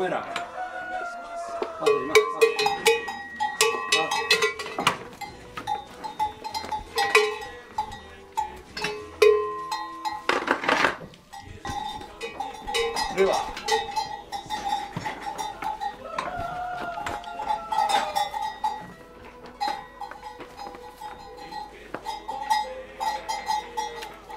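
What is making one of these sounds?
A shovel scrapes and knocks across a wet floor.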